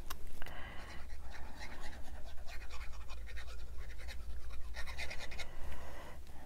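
A glue bottle's tip scrapes softly across paper.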